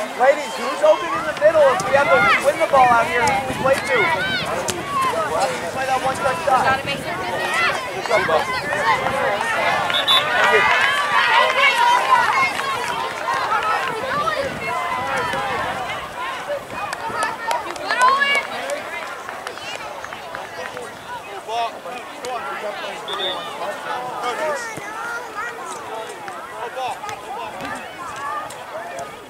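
Children and adults shout and call out outdoors across a large open field.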